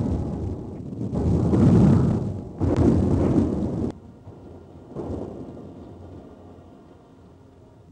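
Shells explode on the water with a rumbling roar.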